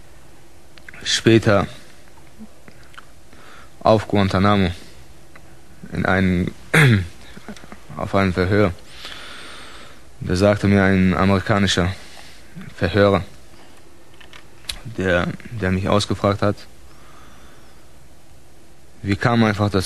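A man speaks calmly in short phrases with pauses, close to a microphone.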